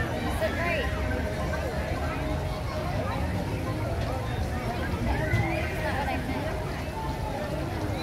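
Water splashes and trickles steadily from a fountain close by.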